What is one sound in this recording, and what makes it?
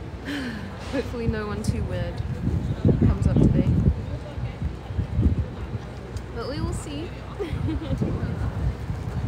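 A young woman speaks close to the microphone, casually and with animation.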